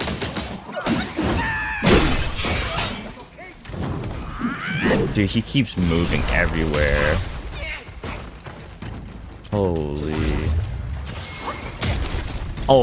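Heavy blows land with sharp, thudding impacts.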